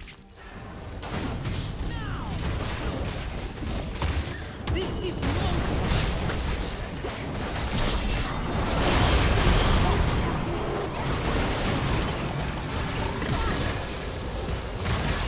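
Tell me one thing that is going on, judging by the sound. Game spell effects whoosh, boom and crash in a busy fight.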